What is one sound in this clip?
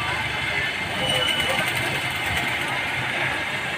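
A sewing machine whirs and clatters steadily close by.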